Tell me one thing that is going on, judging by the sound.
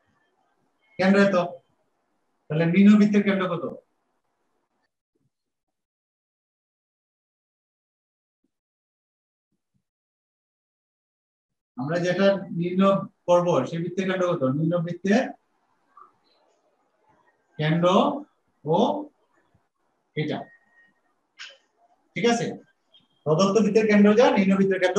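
A man speaks calmly, explaining, close by.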